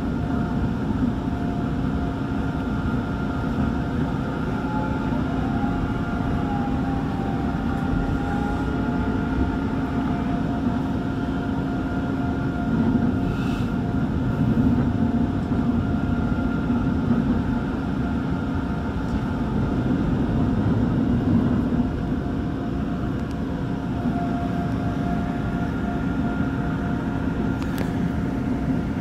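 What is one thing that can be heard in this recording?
The motors of an electric commuter train whine with a steady tone.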